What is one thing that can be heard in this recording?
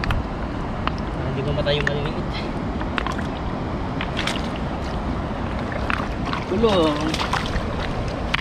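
Shallow water splashes and sloshes around moving hands.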